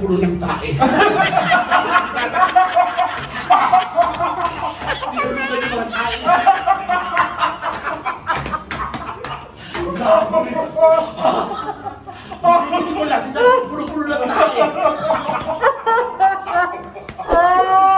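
Several women laugh loudly and shriek.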